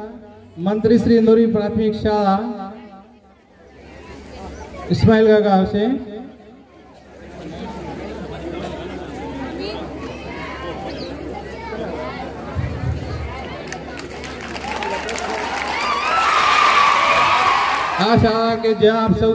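A man speaks with animation through a loudspeaker.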